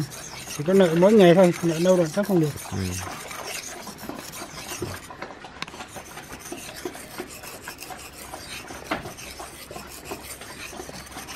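A blade scrapes back and forth on a whetstone.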